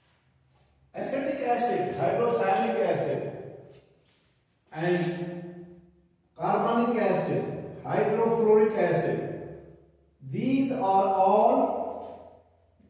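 An elderly man speaks nearby in a steady, explaining tone.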